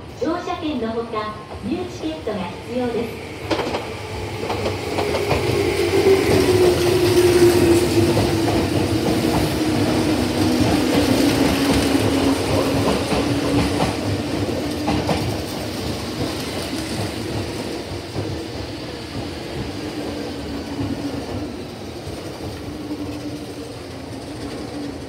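An electric train rolls in close by with a loud rumble that builds and then slowly eases.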